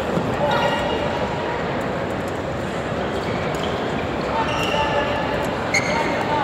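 Play from other courts echoes through a large hall.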